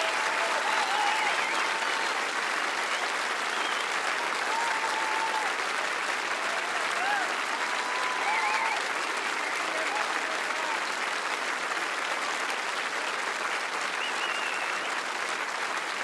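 Audience members whistle and cheer.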